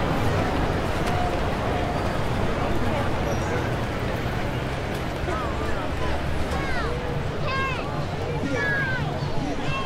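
Footsteps shuffle through a busy crowd.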